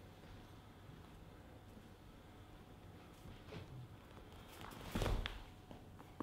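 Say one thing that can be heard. Bare feet shuffle softly on a padded floor.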